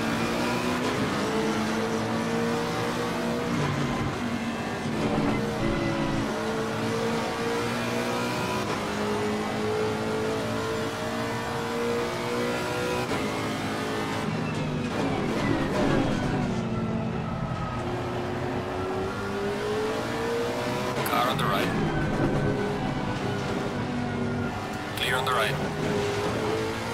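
A racing car engine roars steadily, its pitch rising and falling as it shifts gears.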